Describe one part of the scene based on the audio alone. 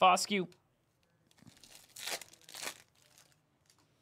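Cards rustle and slide out of a plastic sleeve.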